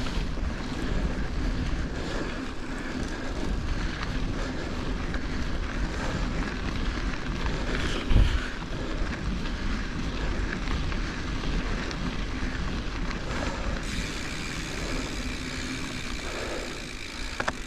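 Bicycle tyres crunch and rumble over a gravel track.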